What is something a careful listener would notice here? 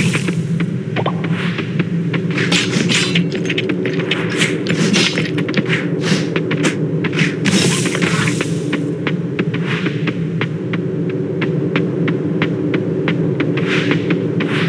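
Quick sharp hits clack over and over as a sword strikes rocks and creatures.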